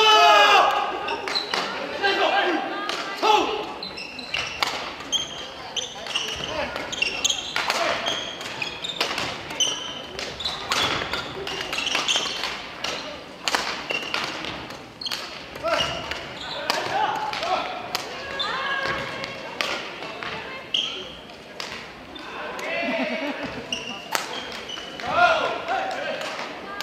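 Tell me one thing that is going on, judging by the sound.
Shuttlecocks are struck sharply with rackets, again and again, in a large echoing hall.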